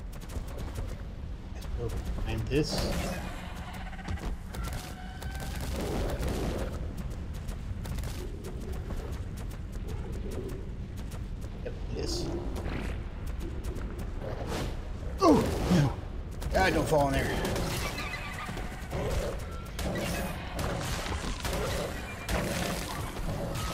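Heavy footsteps of a large creature thud on rock.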